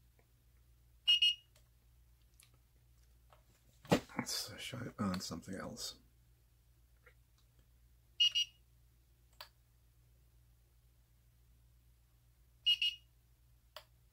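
An infrared thermometer beeps briefly.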